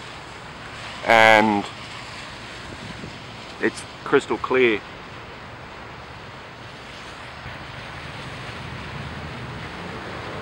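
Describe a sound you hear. A boat engine hums low and steady far off across the water.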